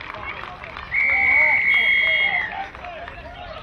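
A referee's whistle blows one long blast.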